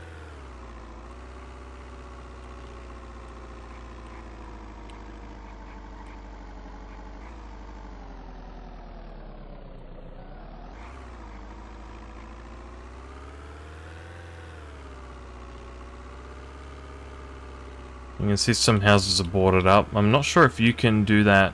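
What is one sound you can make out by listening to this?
A car engine hums steadily, its pitch rising and falling with speed.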